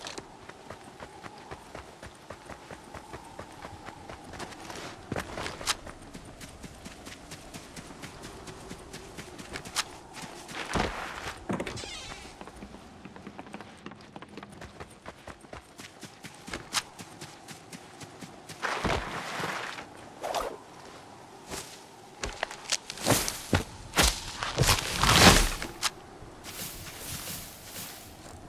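Footsteps patter quickly and steadily on grass and ground.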